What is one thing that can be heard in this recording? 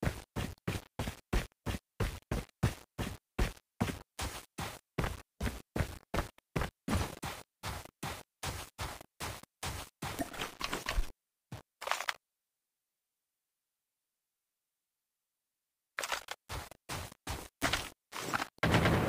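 Quick footsteps thud on grass in a steady running rhythm.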